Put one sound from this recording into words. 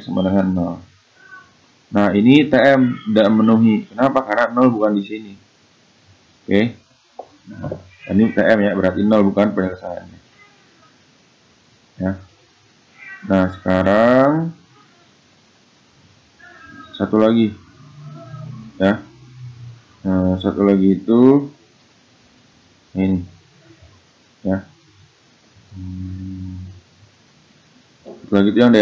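A man speaks calmly into a close microphone, explaining with pauses.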